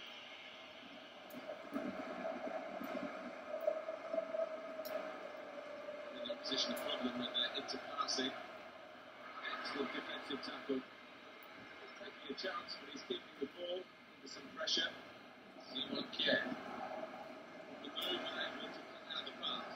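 A football video game's stadium crowd murmurs and cheers through a television speaker.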